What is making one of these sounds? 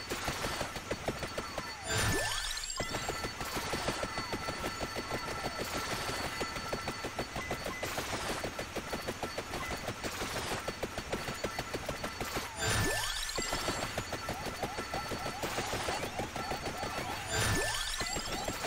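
Rapid game hit sounds patter without pause.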